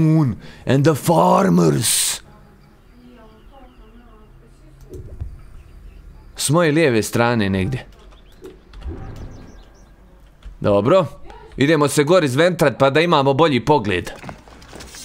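A young man talks with animation, close to a microphone, in short bursts.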